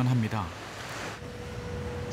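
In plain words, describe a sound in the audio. Small waves wash gently onto a shore.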